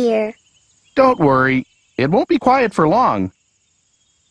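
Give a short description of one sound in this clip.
A woman speaks calmly and reassuringly.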